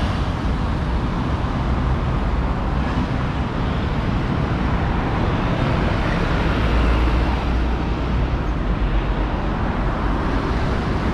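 City traffic hums steadily along a wide street.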